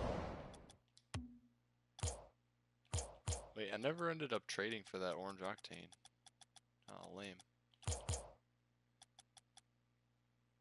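Short electronic menu clicks tick one after another.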